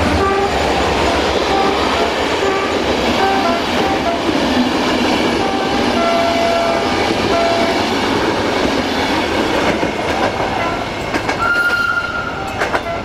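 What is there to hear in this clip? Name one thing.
Metal wheels squeal in short high tones.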